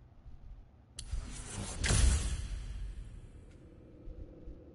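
A menu sound effect whooshes and booms loudly as an upgrade is bought.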